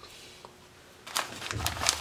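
Fingers tap and rub on a plastic tub lid.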